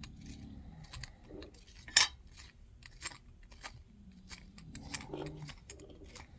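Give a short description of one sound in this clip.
Small metal parts click and tap close by.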